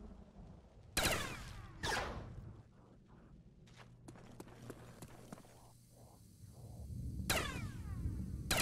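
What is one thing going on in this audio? Gunshots crack loudly, each with a ringing echo.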